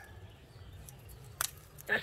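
Leaves rustle softly as a hand grips a fruit on a branch.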